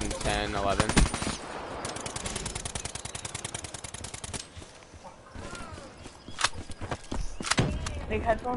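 Guns fire sharp, loud shots.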